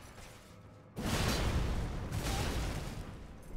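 A blade strikes a foe with a heavy burst of noise.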